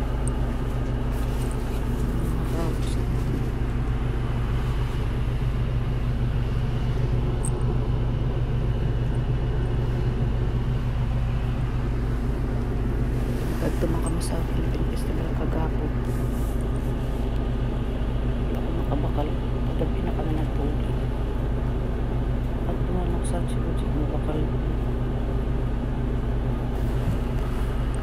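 A bus engine hums steadily inside the cabin.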